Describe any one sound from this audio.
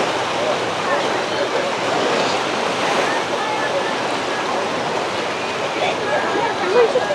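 Small waves wash gently over the shallows.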